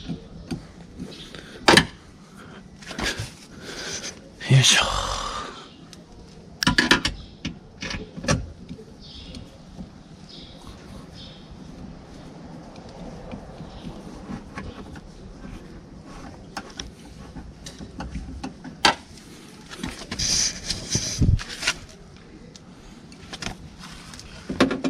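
Plastic sheeting rustles and crinkles.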